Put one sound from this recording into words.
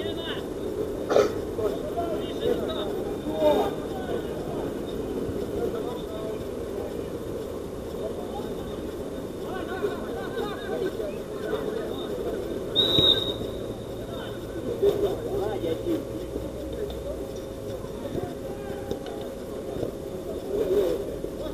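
Young men shout and call out to each other across an open outdoor pitch.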